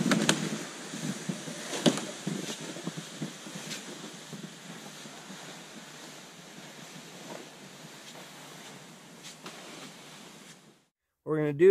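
A sled scrapes over snow, fading into the distance.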